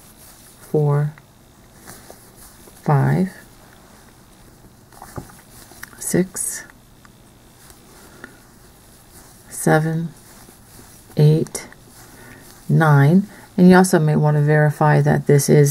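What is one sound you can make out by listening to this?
Yarn rustles softly as a crochet hook pulls it through.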